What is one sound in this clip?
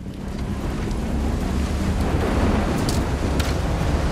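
A large fire roars.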